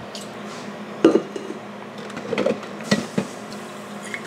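A metal cup clinks down on a countertop.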